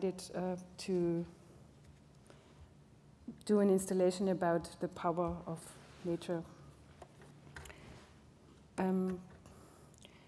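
A middle-aged woman speaks calmly into a microphone in short phrases, with pauses.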